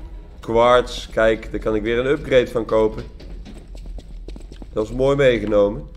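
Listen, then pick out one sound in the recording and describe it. Footsteps run on a stone floor.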